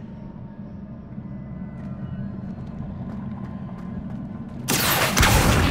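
Footsteps tap softly on a stone floor.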